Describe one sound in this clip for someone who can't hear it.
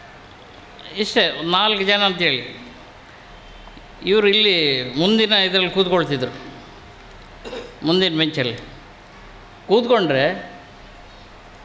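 A middle-aged man speaks forcefully into a microphone in short bursts, heard through a loudspeaker in an echoing hall.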